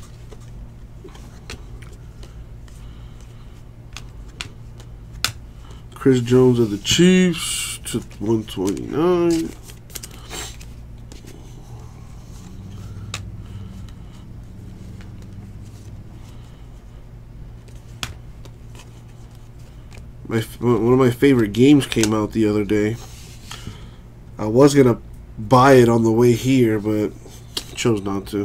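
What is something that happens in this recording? Stiff trading cards rustle and flick as they are sorted by hand.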